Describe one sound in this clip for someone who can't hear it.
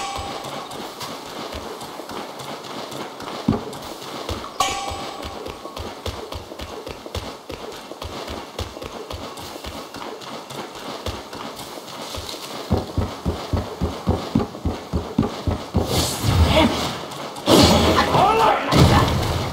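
Footsteps thud quickly on stone and wooden boards.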